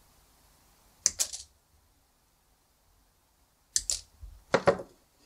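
Wire strippers snip and strip insulation off a thin wire with sharp clicks.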